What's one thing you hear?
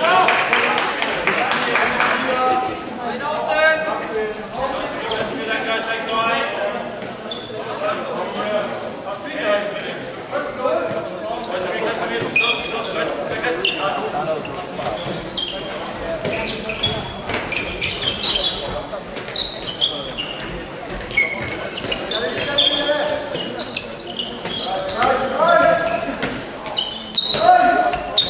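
A ball bounces on a hard floor with hollow thuds.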